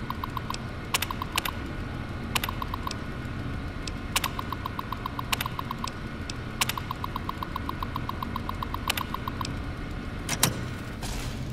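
Keyboard keys clack sharply.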